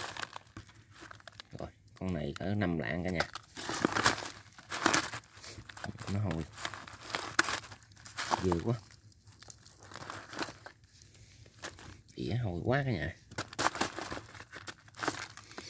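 A wire cage rattles as it is handled.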